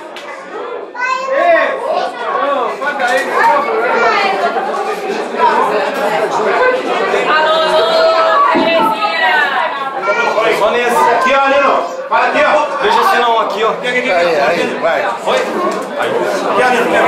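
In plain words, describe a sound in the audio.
A crowd of people sings along loudly.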